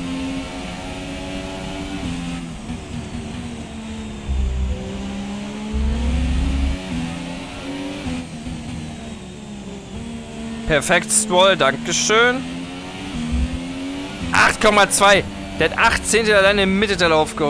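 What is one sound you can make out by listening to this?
A racing car engine whines loudly, its pitch rising and dropping with each gear change.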